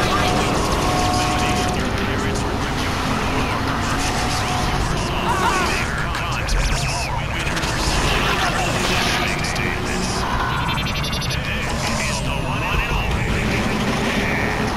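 A car engine hums steadily as a taxi drives along a street.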